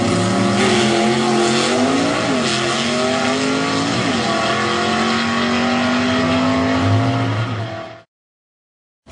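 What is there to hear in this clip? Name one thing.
A race car engine roars as the car speeds away, its pitch climbing and dropping through gear changes.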